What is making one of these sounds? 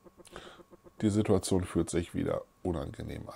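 A middle-aged man speaks into a close microphone.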